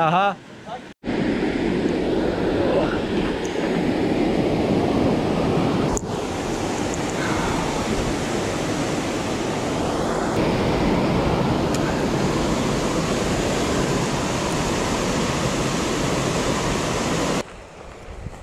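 Water rushes steadily over a weir close by.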